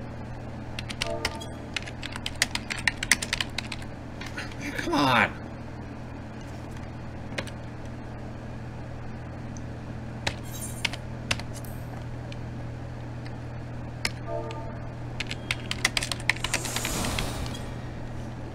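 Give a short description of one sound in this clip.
Keys clatter on a keyboard close by.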